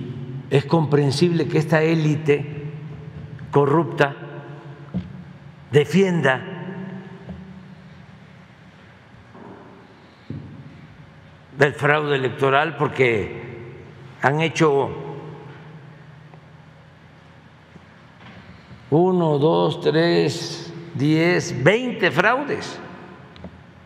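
An elderly man speaks with animation into a microphone, in a large echoing hall.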